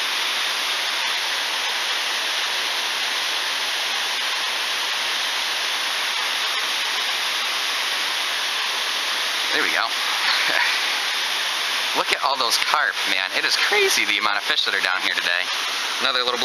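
Water rushes steadily over rocks nearby.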